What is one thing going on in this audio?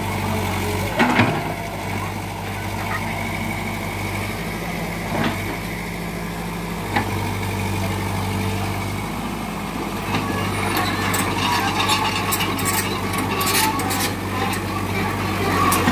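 Branches and brush crack and snap as an excavator bucket pushes through them.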